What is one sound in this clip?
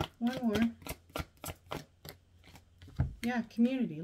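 Cards riffle and snap against each other.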